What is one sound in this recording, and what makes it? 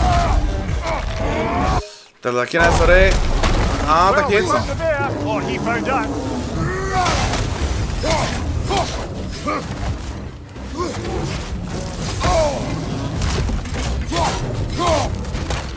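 Heavy blows thud during a fight.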